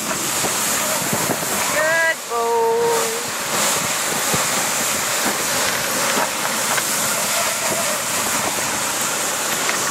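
A man speaks close to the microphone, his voice muffled by the wind.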